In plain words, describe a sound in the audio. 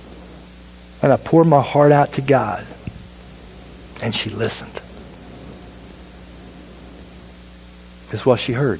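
A man speaks calmly through a microphone in an echoing hall, with pauses.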